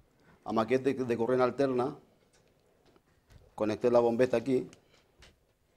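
An older man speaks calmly through a microphone in a large room, in short bursts.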